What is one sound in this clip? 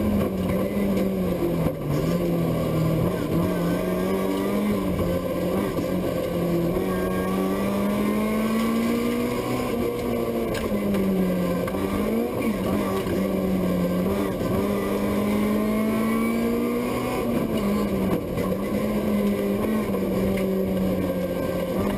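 A car engine roars loudly, revving up and down through the gears.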